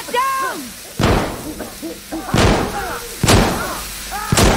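An explosion booms indoors.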